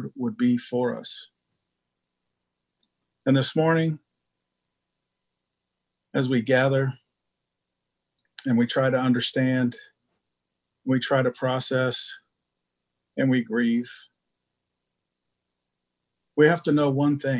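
An older man speaks calmly in short phrases over an online call, with pauses between them.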